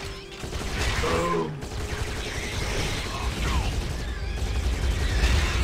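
Guns fire rapidly.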